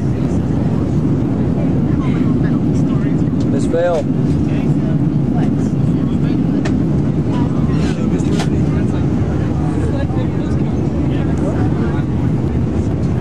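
Young people talk quietly nearby.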